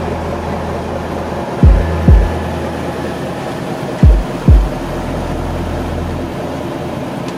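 A large bus engine idles with a low, steady rumble nearby.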